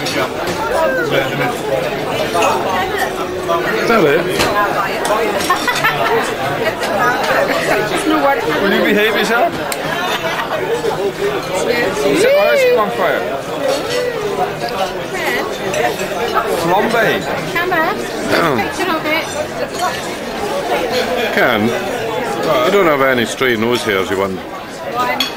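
Many people chatter in a busy room.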